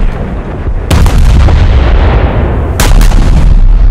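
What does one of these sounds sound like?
Big naval guns fire with loud booming blasts.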